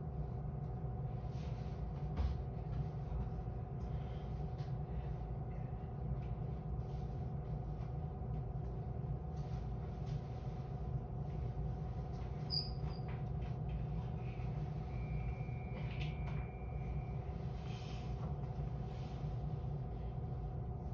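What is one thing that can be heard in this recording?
A train's engine hums steadily at idle, heard from inside the carriage.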